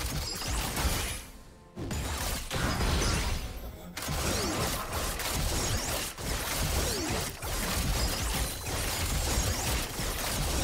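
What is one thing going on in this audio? Game spell effects and impacts clash and crackle in a fight.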